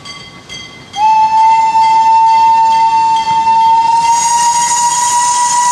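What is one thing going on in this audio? A steam locomotive blows a long, steady whistle.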